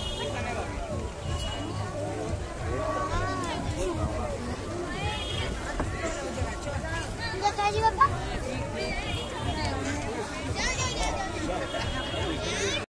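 A crowd of men and women chatters all around in a busy echoing hall.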